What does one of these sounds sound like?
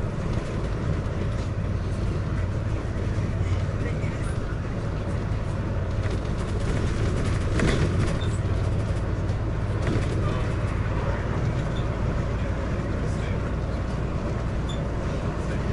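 A vehicle's engine rumbles steadily as it drives along a road.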